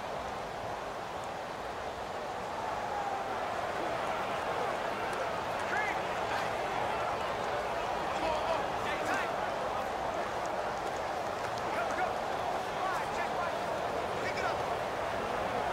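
A large stadium crowd roars and murmurs steadily, with scattered whistles and shouts.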